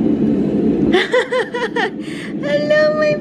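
A baby fusses and cries.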